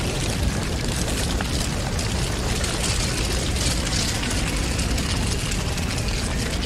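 Burning wood pops and snaps.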